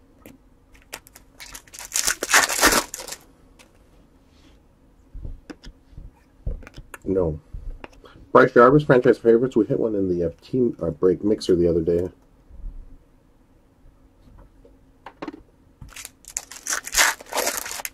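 A foil wrapper crinkles as it is torn open and handled.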